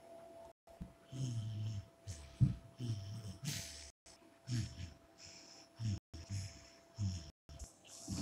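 A kitten paws and thumps at a soft toy on a carpet.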